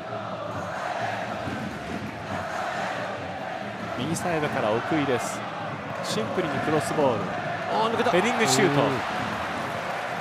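A large crowd chants and cheers throughout a stadium.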